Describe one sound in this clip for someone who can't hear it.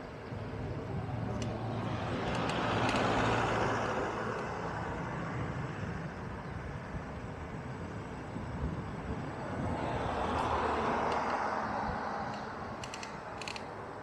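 Cars swish past on a nearby road, each rising and then fading.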